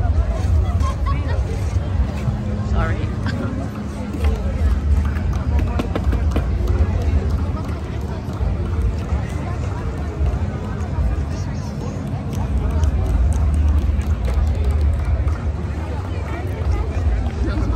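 A large crowd chatters outdoors all around.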